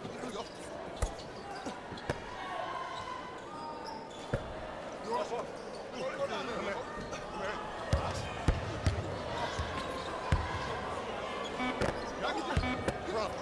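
A basketball bounces hard on a court.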